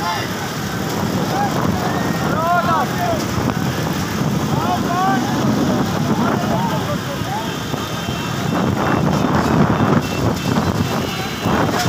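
A crowd of men talk and shout loudly close by.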